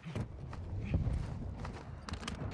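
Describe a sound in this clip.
Heavy thuds sound as a climber hauls up over a ledge.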